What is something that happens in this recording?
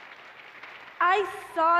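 A young woman speaks through a microphone in a large echoing hall.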